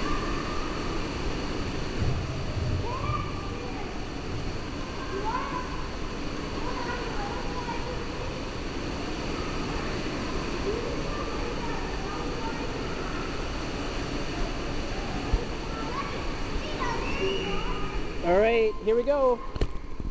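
Water laps and sloshes close by in a large echoing hall.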